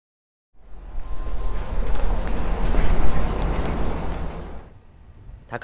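A cicada buzzes loudly and steadily.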